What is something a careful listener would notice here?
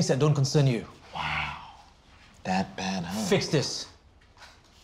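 A young man answers in a bright, animated voice.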